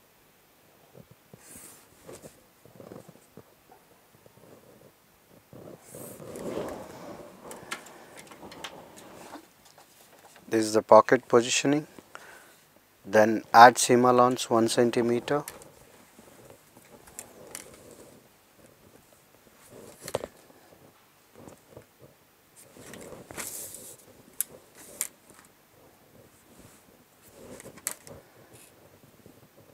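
A pencil scratches along a ruler on paper.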